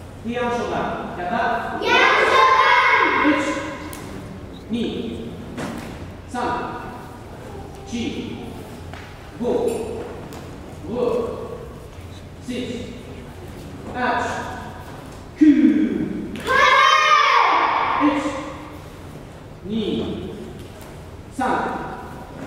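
Bare feet stamp and shuffle on a wooden floor.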